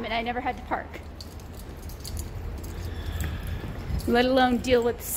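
A young woman speaks close by in a high, animated voice.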